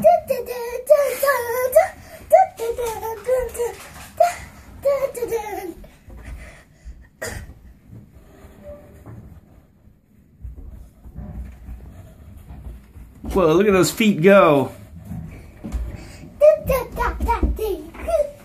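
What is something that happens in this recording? A young child talks and sings excitedly close by.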